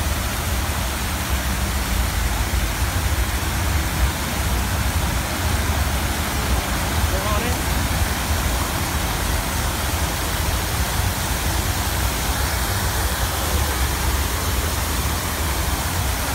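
Fountain jets spray and splash into a pool of water.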